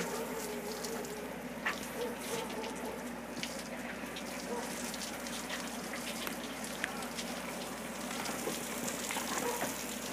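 Water sprays from a hose and splashes onto a boat's deck.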